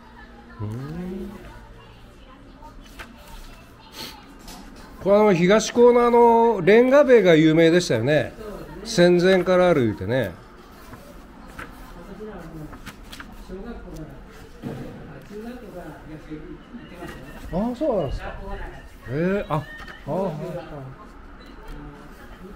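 Paper pages flip and rustle.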